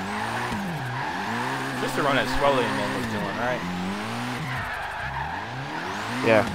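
A car engine revs hard, rising and falling.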